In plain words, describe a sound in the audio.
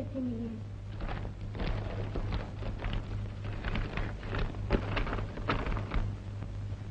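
Paper rustles as a letter is unfolded.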